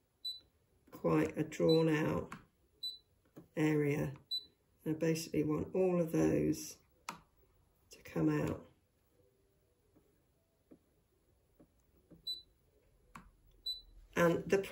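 A machine beeps briefly, now and then.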